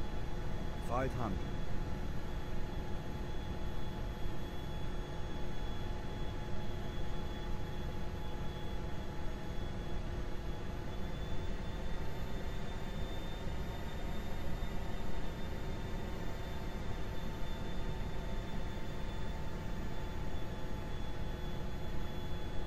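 Jet engines roar steadily in flight.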